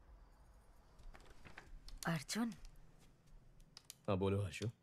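A man types on a laptop keyboard.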